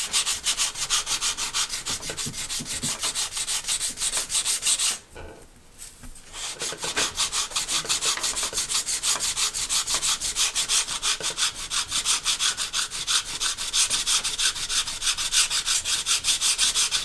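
A sanding block scrapes quickly back and forth over thin wood.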